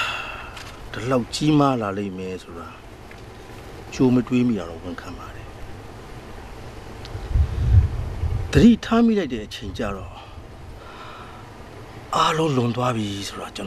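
A middle-aged man speaks in a low, serious voice, close by.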